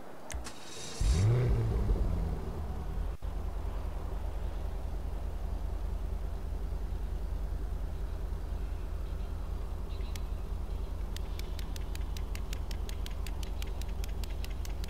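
A car engine starts and then idles with a steady low rumble.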